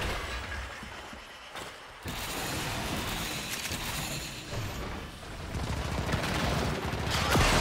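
A figure whooshes as it dashes along.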